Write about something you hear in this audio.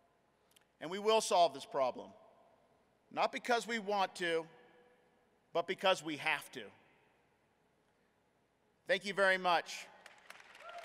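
A man speaks slowly and deliberately into a microphone, in short phrases with pauses, in a large echoing hall.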